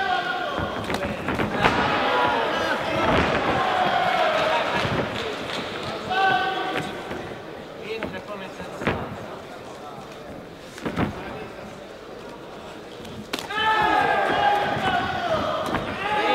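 Punches thud against a fighter's body.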